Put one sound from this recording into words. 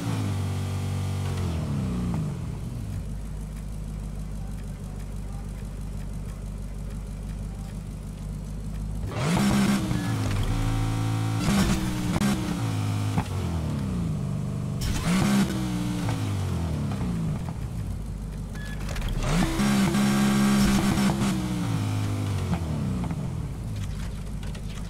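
A sports car engine idles and revs loudly in bursts.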